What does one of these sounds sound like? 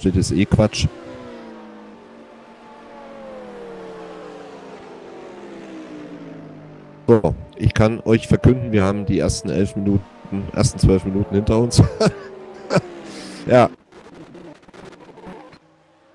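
Racing car engines drone and change pitch as the cars go around the track.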